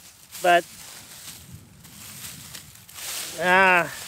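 Dry crop stalks rustle under a hand.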